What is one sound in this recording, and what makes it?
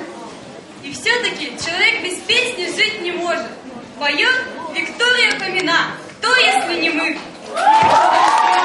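A young girl speaks into a microphone, heard over loudspeakers.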